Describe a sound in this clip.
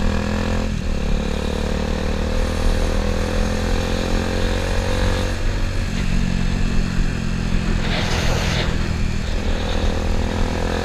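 Wind rushes past the rider.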